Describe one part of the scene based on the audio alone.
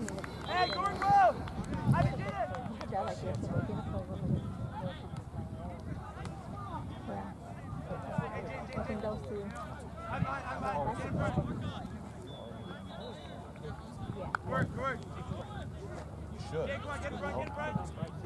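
Young men shout and call out to each other across an open field, some way off.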